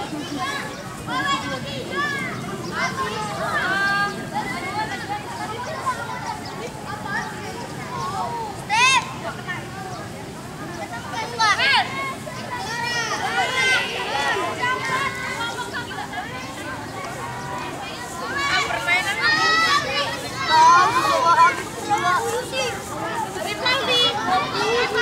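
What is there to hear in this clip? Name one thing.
Many children chatter and shout outdoors.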